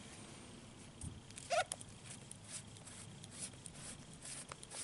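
A small metal part clicks softly as it is handled.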